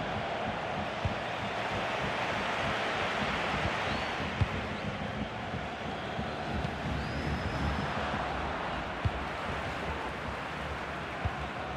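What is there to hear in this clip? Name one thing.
A football is kicked with dull thumps now and then.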